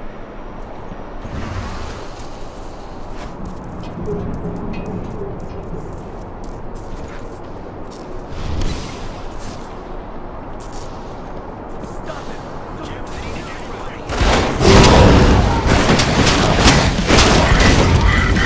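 Blows thud and slash against bodies in a fight.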